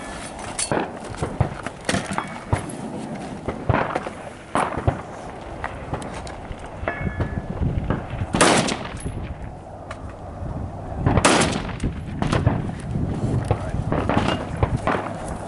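Rifle shots crack outdoors, one after another, with a short echo.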